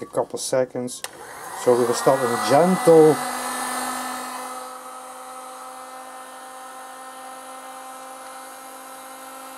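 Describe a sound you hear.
An electric drill whirs steadily.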